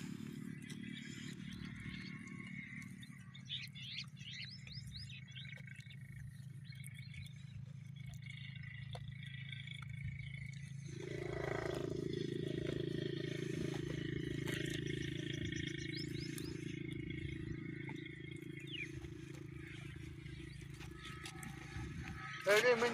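Goats tear and chew grass close by.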